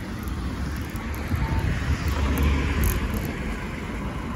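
A car passes close by, growing louder and then fading.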